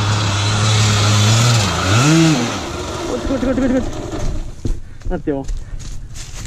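Dry leaves crunch under a dirt bike's tyres.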